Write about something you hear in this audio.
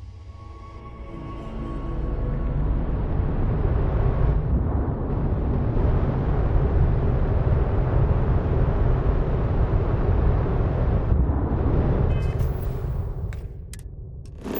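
A spaceship's engines rumble deeply and steadily.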